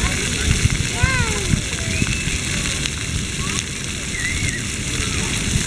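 A young child squeals and babbles.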